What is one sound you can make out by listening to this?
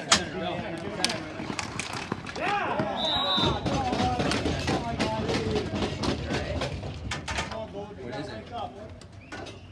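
Hockey sticks clack and scrape on a hard court.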